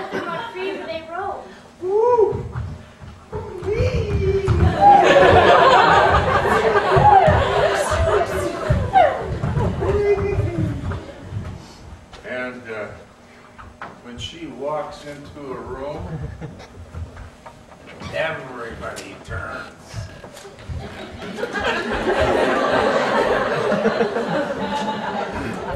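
Bare feet thump and slide on a wooden stage floor.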